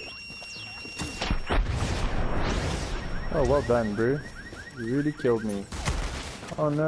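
Gunshots crack in bursts.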